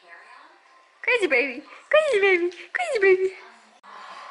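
A baby squeals and babbles up close.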